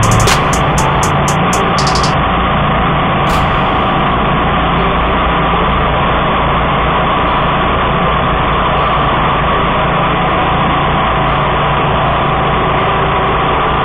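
A mower engine roars loudly and steadily close by.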